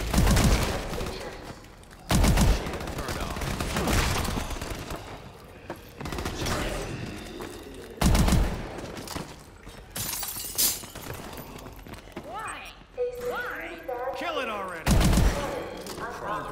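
Gunshots boom in heavy bursts.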